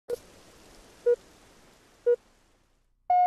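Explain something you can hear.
Short electronic beeps sound once a second.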